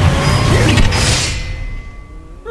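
A heavy blade grinds against metal with a harsh scrape.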